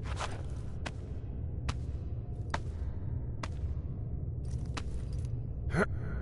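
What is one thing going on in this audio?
Hands scrape and grip against rock.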